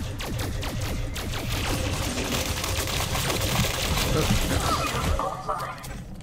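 A gun fires rapid energy shots.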